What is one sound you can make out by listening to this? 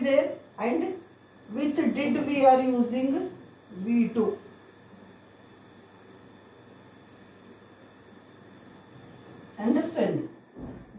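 A middle-aged woman speaks clearly, as if teaching, close by.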